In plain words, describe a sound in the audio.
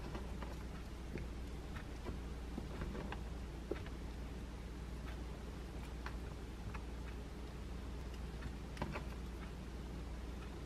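Small pieces of vegetable are placed with soft taps on a bagel.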